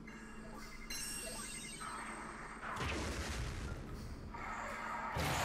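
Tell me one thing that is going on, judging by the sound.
A cannon blast roars with a rumbling explosion.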